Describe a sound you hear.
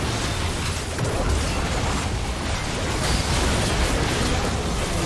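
Game spell blasts and weapon hits clash rapidly in a battle.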